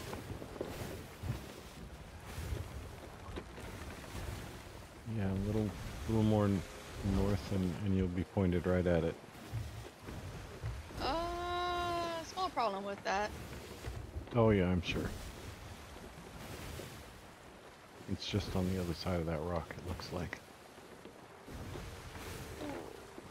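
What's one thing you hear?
Ocean waves roll and crash.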